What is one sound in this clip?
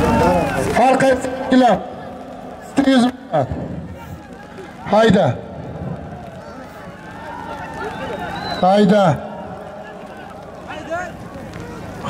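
Men on horseback shout loudly up close.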